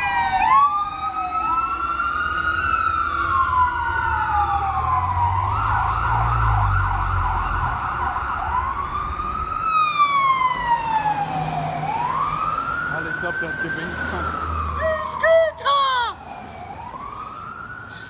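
A siren wails up and down loudly and slowly fades into the distance.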